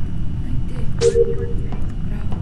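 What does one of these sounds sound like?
A short electronic chime sounds as a game panel closes.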